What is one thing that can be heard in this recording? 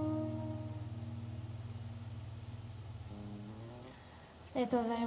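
An acoustic guitar chord rings out and slowly fades.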